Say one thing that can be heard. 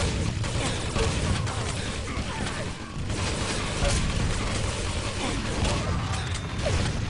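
Rapid game gunfire and blasts crackle in quick bursts.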